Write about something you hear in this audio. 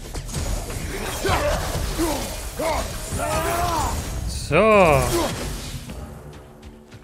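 Heavy blows and crashes of a fight ring out.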